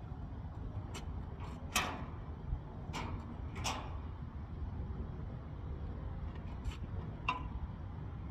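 Metal clanks sharply a few times on a trailer.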